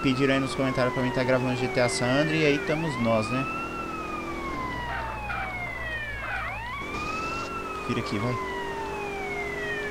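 A siren wails, rising and falling in long sweeps.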